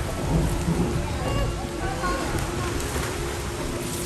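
A child splashes loudly in the water nearby.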